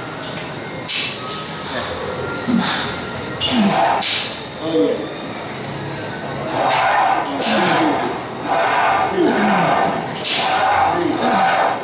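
A man shouts encouragement loudly nearby.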